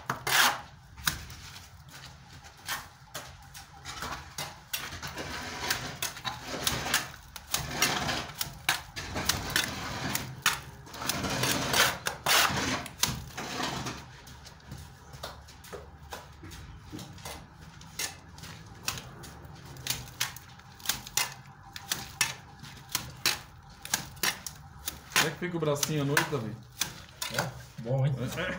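A trowel scrapes and slaps wet plaster onto a wall.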